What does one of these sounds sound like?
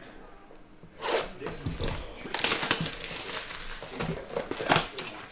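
Cellophane wrapping crinkles and rustles as hands tear it off a box of cards.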